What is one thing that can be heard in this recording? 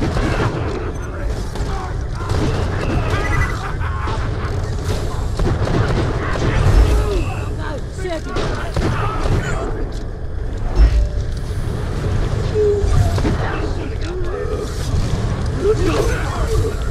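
Guns fire in rapid bursts with loud bangs.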